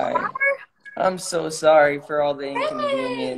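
A woman speaks and laughs with animation over an online call.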